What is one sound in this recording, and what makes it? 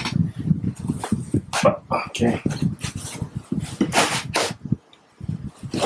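Metal parts knock and clatter as they are lifted out of foam packing.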